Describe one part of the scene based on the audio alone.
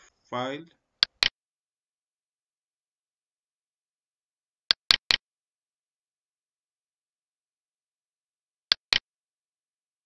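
A computer mouse clicks several times.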